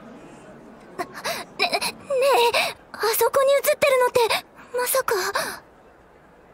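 A young woman speaks with surprise.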